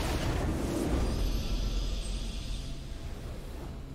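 A triumphant game fanfare swells.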